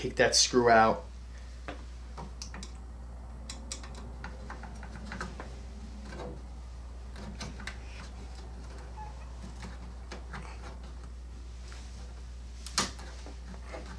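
Hands handle wires and a loudspeaker, making faint clicks and rustles.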